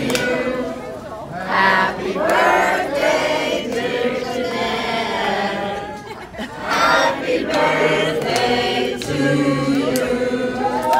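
A crowd of men and women sings together loudly in a room.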